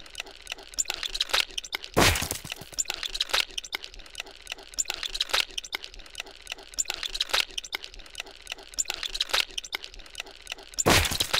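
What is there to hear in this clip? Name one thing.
Heavy metal presses slam together again and again with loud crunching thuds.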